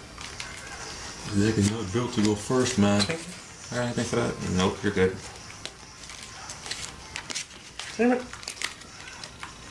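Playing cards are laid softly onto a mat.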